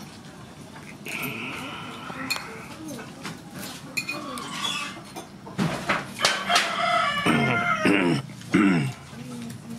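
A spoon scrapes against a bowl.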